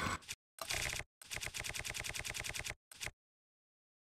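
Menu selections tick quickly in an even rhythm.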